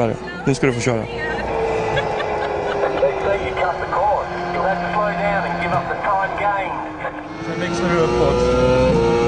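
A racing car engine whines and shifts pitch through loudspeakers.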